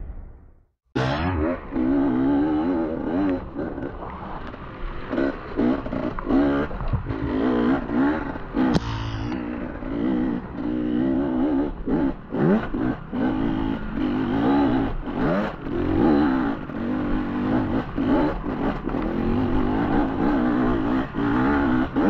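Tyres bump and rattle over a rough dirt trail.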